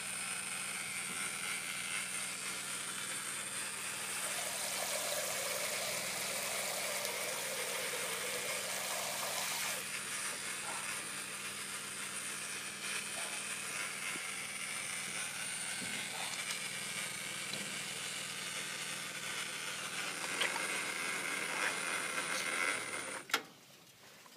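Water sprays hard and splashes into a metal tub.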